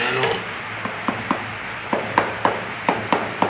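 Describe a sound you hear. A mallet taps on wall tiles in sharp knocks.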